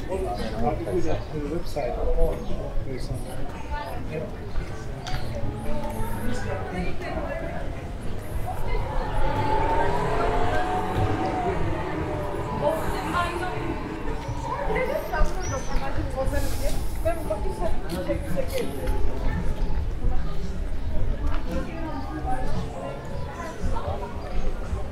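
Men and women talk quietly in the distance outdoors.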